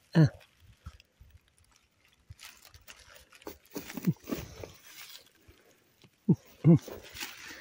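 Straw rustles under handling.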